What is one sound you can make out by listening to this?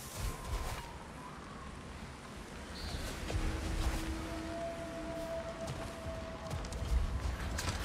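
Heavy footsteps crunch on snow.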